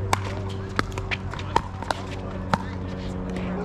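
Paddles strike a plastic ball with sharp pops back and forth.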